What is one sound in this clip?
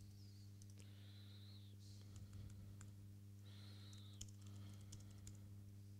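Keys click on a laptop keyboard.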